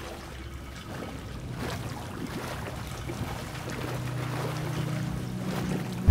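Water sloshes and splashes as a person wades through it.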